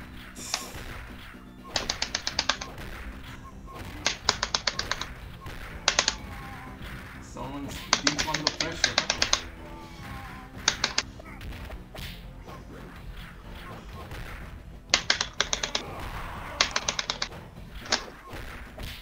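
Rapid punches and kicks land with sharp smacking hits in bursts.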